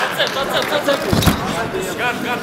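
Fighters' bodies thump onto the mat.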